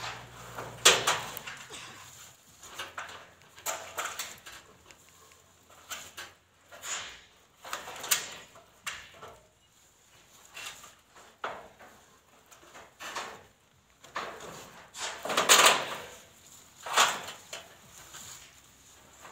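Leaves and stems rustle in bursts close by.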